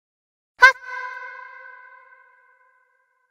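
A metal bowl is struck and rings out, slowly fading.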